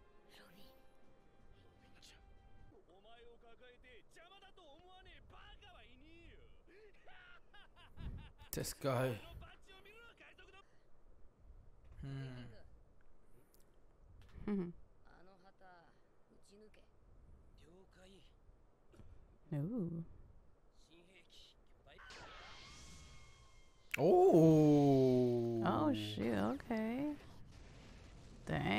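Cartoon voices speak quietly through a loudspeaker.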